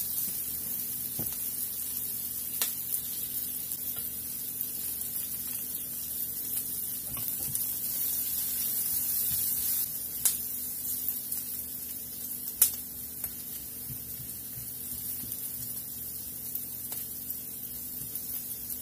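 Onions sizzle steadily in a hot frying pan.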